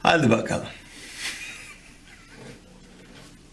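A man chuckles softly.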